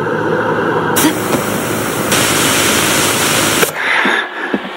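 Static hisses loudly.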